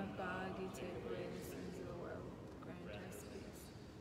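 A man speaks softly near a microphone.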